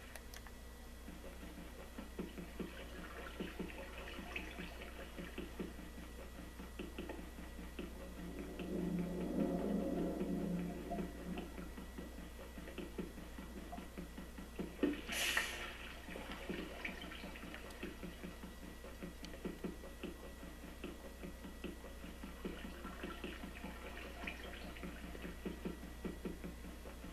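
Water bubbles and gurgles underwater.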